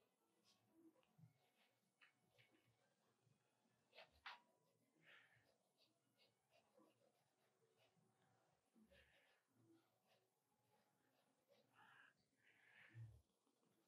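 A pencil scratches and scrapes on paper.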